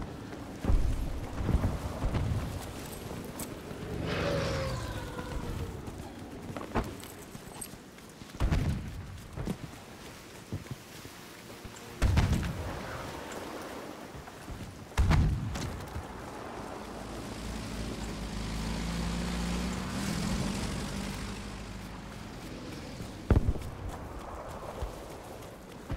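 Gunfire cracks in the distance.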